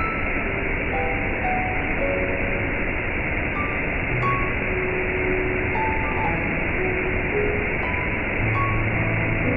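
A waterfall rushes and splashes steadily onto rocks.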